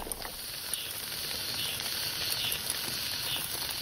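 Food sizzles on a hot grill.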